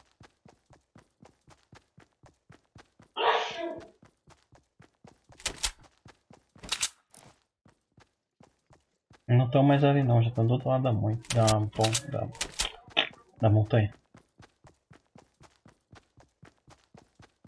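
Footsteps run quickly and steadily over grass.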